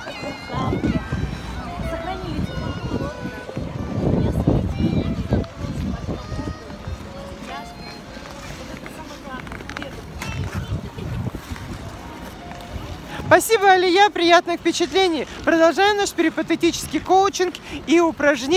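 A middle-aged woman talks cheerfully close by.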